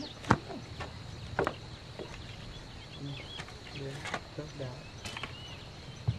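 A shovel scrapes and thuds into soil.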